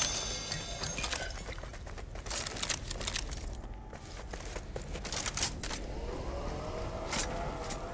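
Footsteps tap quickly on a hard floor and up stairs.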